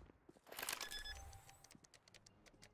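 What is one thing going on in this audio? An electronic keypad beeps as a code is typed in.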